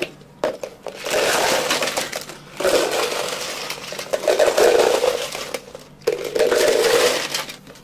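Ice cubes rattle and clatter as they are poured from one plastic cup into another.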